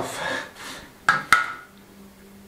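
A spirit level knocks down onto a floor tile.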